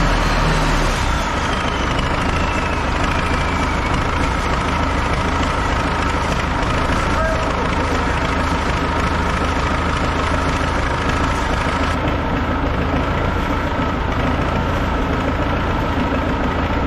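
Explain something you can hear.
A tractor engine idles steadily with a low rumble.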